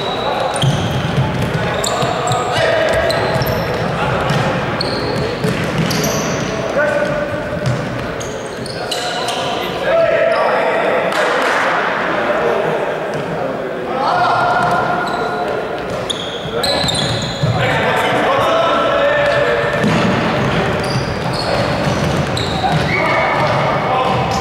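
Sneakers squeak sharply on a hard indoor court, echoing in a large hall.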